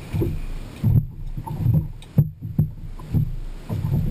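A fish flops and thumps on a boat deck.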